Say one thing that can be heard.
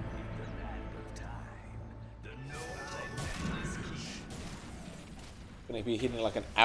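Fantasy battle sound effects clash and crackle with magic blasts.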